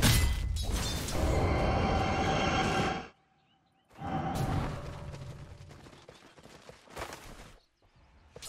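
Magic blasts and weapon clashes crackle and boom loudly.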